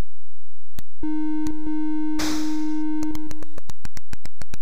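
A steady electronic tone buzzes from a retro video game.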